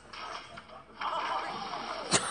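Water splashes loudly as a person falls into a pool.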